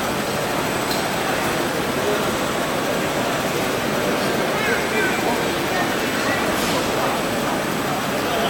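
A crowd of adults and children chatters in a large echoing hall.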